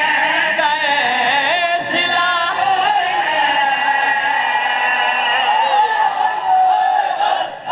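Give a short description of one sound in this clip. Several men chant together through microphones.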